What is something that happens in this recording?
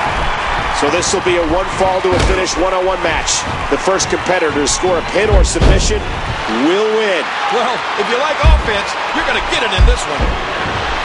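Wrestlers' blows land with sharp thuds.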